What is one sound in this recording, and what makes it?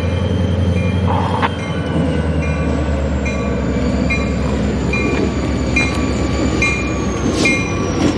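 Train wheels clatter rhythmically on the rails.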